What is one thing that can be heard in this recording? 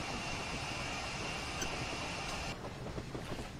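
A steam locomotive hisses steadily as it rolls along.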